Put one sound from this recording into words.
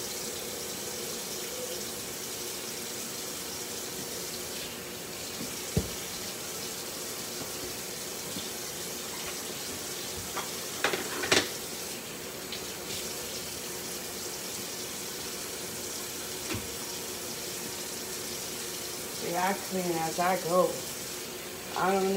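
A young woman wipes a counter with a cloth.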